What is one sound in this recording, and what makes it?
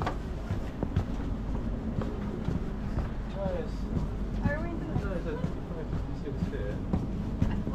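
A suitcase rolls along on its wheels.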